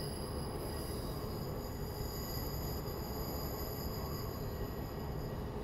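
A train engine hums steadily from inside the cab.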